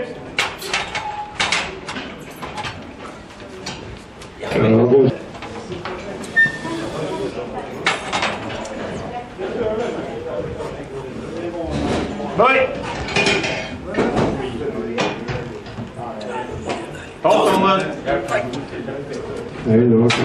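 Men talk and call out nearby in an echoing room.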